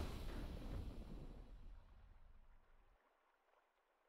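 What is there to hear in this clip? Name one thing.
A triumphant game fanfare rings out and fades away.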